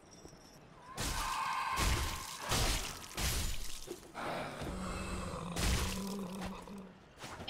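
Blades clash and heavy blows thud in a fight.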